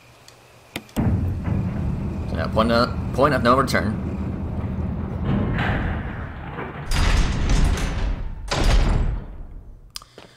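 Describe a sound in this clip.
A lift rumbles and clatters as it moves.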